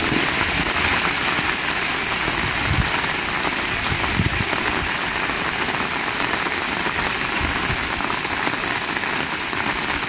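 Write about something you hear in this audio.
Rainwater gushes and splashes down a gutter.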